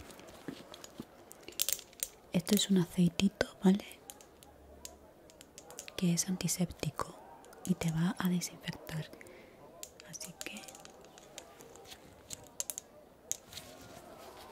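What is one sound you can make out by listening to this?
A glass dropper clicks and taps against a small bottle.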